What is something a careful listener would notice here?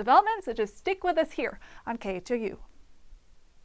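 A young woman speaks brightly and clearly into a microphone.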